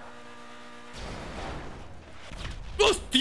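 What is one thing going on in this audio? A car crashes and scrapes against a wall.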